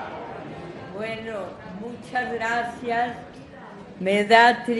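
An elderly woman speaks through a microphone in a large echoing hall.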